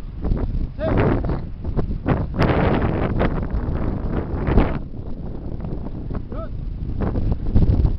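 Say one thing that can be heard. Young boys talk and shout nearby outdoors.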